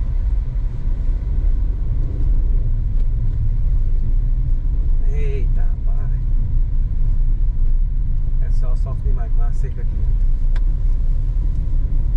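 A car engine rumbles low and steady as it drives along.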